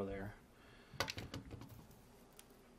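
Small plastic parts clatter and knock on a hard surface.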